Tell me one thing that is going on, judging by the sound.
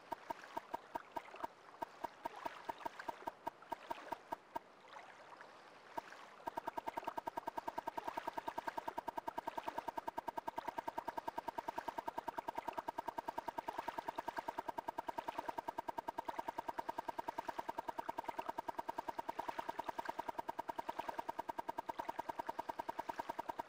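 A menu cursor ticks in quick, even clicks as a list scrolls, speeding up into a rapid stream.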